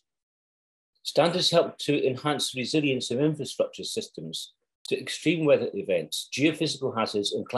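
An older man speaks calmly through an online call microphone.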